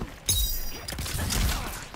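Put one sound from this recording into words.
An icy energy blast whooshes through the air.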